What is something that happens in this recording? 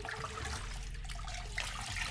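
Dirty water drips and trickles from a squeezed sponge.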